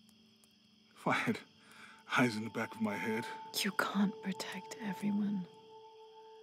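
A man speaks quietly and closely.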